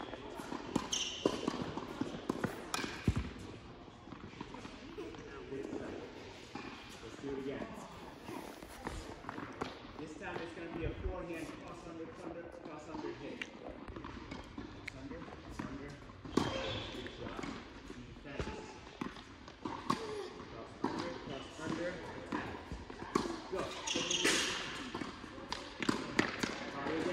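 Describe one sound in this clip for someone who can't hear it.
Sneakers squeak and shuffle on the court.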